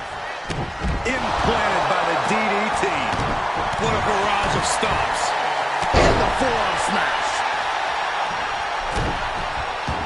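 Bodies slam heavily onto a wrestling ring's mat.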